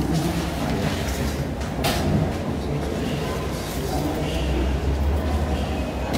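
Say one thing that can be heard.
Papers rustle as pages are turned.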